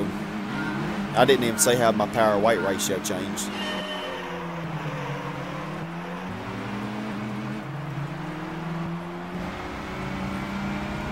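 A car engine hums and revs, rising in pitch as the car speeds up.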